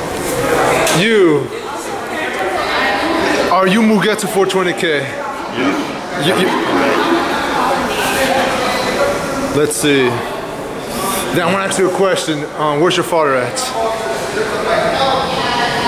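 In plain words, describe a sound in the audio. A man speaks close by in a deep, muffled voice through a mask.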